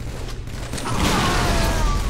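A plasma weapon fires in rapid bursts.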